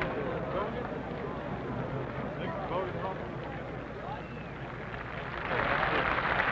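A large outdoor crowd murmurs quietly.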